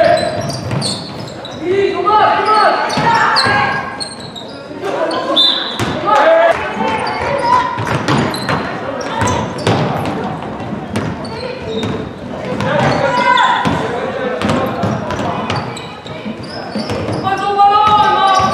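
Young women shout and call to one another in an echoing hall.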